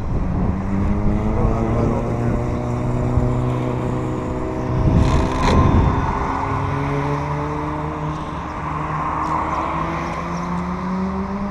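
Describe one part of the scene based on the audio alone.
A small electric motor whines steadily, its pitch rising and falling as a model car speeds along.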